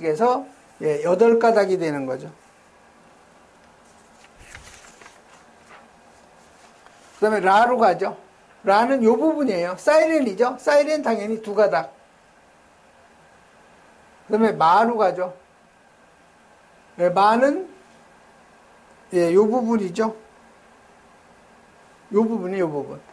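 A middle-aged man lectures calmly through a clip-on microphone, in short phrases with pauses.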